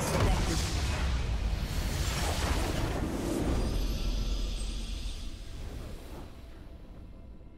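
Loud game battle effects crash and whoosh, then fade away.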